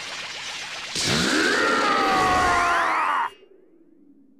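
An energy blast fires with a loud crackling whoosh.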